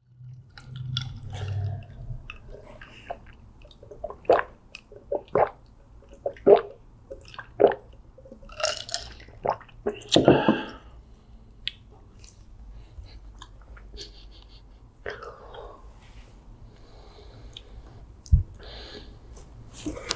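A girl chews soft food with wet, sticky sounds.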